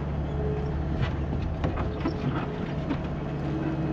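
Metal parts of a loader rattle and clank.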